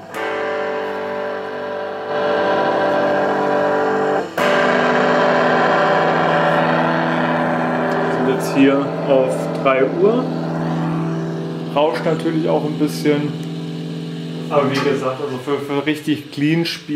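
An electric guitar plays through an amplifier, with ringing chords and bent notes.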